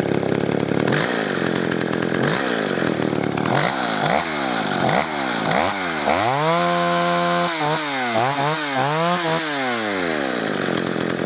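A chainsaw engine revs up and down again and again.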